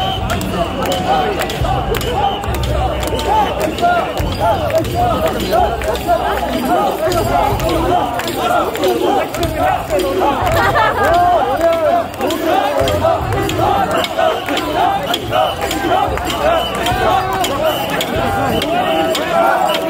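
A large crowd of men and women chant loudly together in a rhythmic call.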